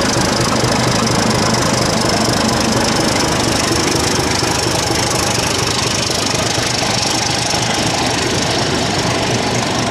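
Train wheels clatter and rumble on the rails.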